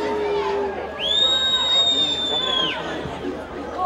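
A referee's whistle blows a long, shrill blast.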